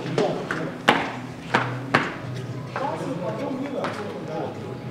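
Football boots with studs clack sharply on a hard floor.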